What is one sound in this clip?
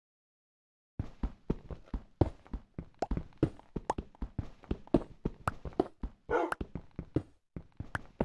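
A pickaxe chips rapidly at stone blocks.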